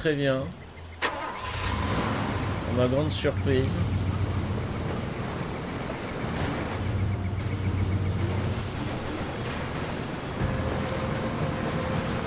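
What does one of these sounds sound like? A car engine rumbles steadily as the vehicle drives.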